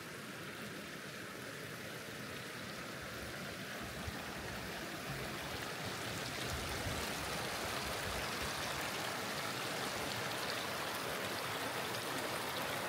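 A shallow stream babbles over rocks, growing louder.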